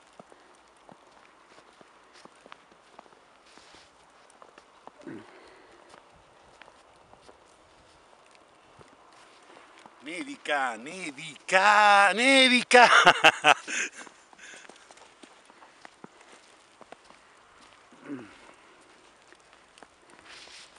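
Boots crunch on snow with each step.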